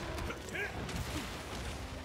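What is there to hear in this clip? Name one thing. Water splashes hard.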